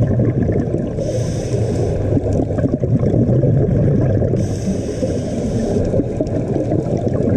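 Scuba bubbles gurgle and rumble steadily underwater.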